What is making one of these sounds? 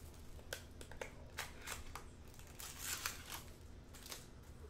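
Paper wrapping rustles and tears close by.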